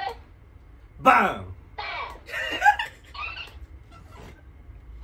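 Young men laugh loudly close by.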